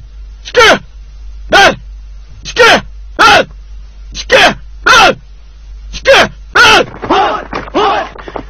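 A group of men marches with heavy footsteps in step.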